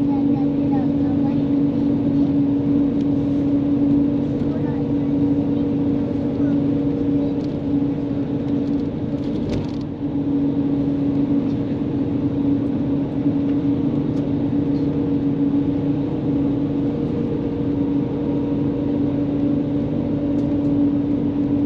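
A vehicle's engine and wheels hum steadily while it travels at speed.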